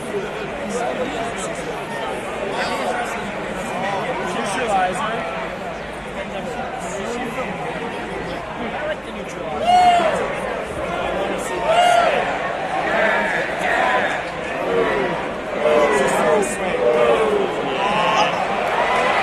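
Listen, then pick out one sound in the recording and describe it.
A large crowd cheers and chatters in a big echoing arena.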